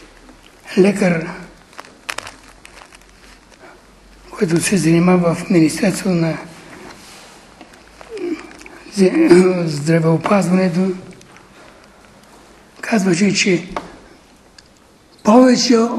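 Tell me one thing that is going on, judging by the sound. An elderly man reads out in a slow, measured voice in a room with some echo.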